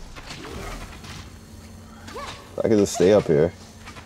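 An energy beam blasts with a whoosh.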